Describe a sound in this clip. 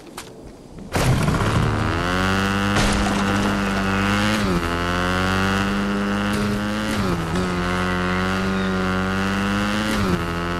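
A motorbike engine hums steadily and revs up and down.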